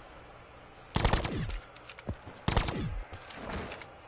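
Gunshots bang loudly, a few times.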